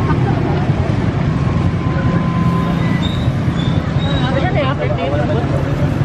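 Young women chat and laugh nearby.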